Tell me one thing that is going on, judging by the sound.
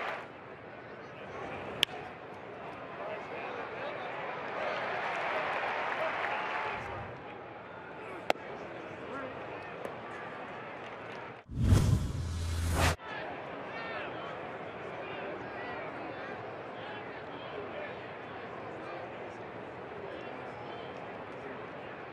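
A large stadium crowd murmurs steadily.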